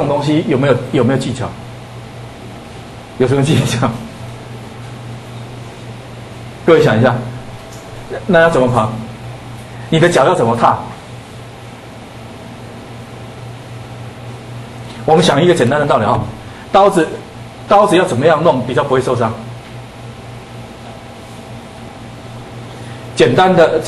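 A man lectures with animation into a microphone, in short bursts with pauses.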